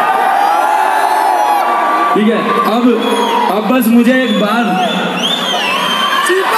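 A crowd screams and cheers loudly nearby.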